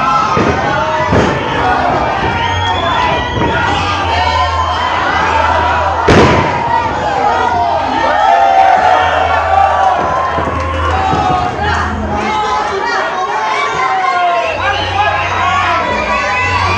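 A crowd shouts and cheers loudly in a large echoing hall.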